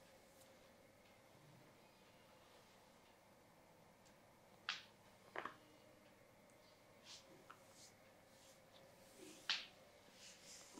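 Hands rub and press softly on a man's face.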